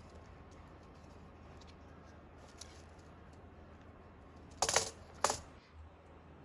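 A keyboard knocks softly as it is lifted and set down.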